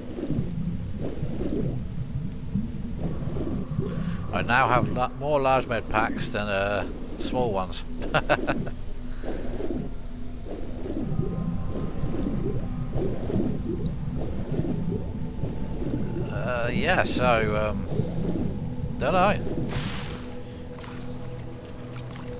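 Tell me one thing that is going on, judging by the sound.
Water gurgles and bubbles in a low, steady murmur.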